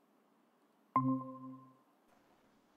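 A short chime sounds through an online call.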